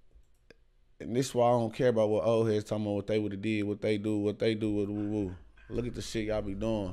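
A man speaks with animation, heard through a loudspeaker.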